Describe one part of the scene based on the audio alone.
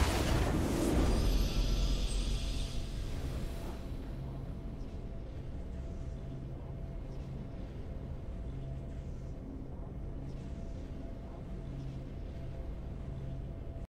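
A triumphant victory fanfare swells and then settles into a soft, steady tune.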